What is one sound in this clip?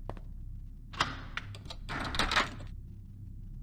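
A metal padlock rattles against a door.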